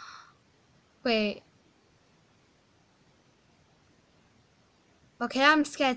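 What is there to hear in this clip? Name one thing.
A girl exclaims close to a microphone.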